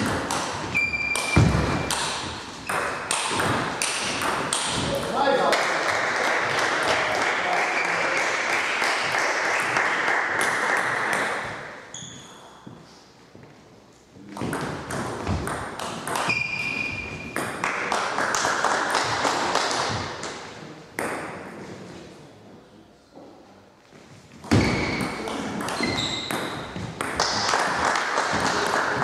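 A table tennis ball clicks quickly back and forth off paddles and a table in an echoing hall.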